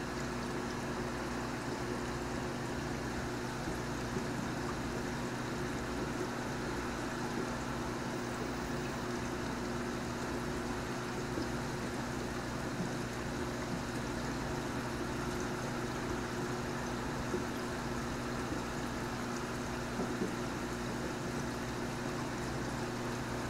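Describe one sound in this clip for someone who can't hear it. Air bubbles stream and fizz in water.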